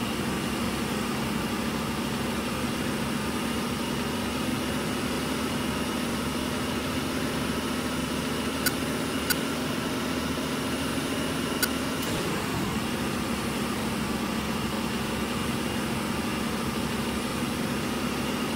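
A truck engine hums steadily as the truck drives along a road.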